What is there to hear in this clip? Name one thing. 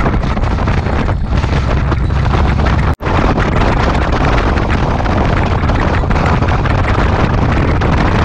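Wind roars and buffets loudly as a vehicle moves along a road.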